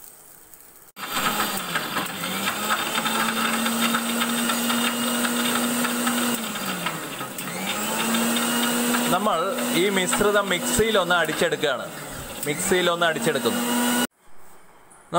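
An electric mixer grinder whirs loudly.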